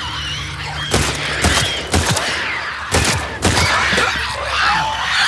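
Gunshots ring out loudly, one after another.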